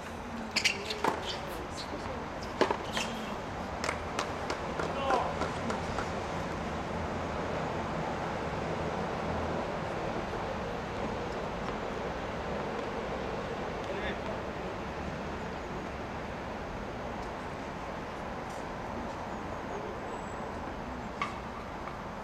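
A tennis ball is struck with a racket and bounces on a hard court.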